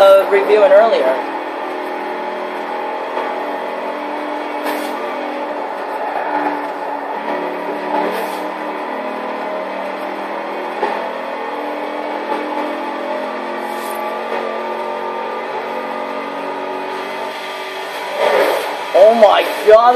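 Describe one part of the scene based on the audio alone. A sports car engine roars steadily at high speed through a loudspeaker.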